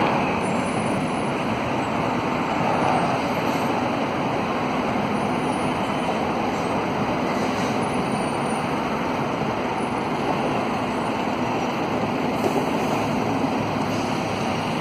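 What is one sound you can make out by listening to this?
A bus hums and rolls slowly past close by.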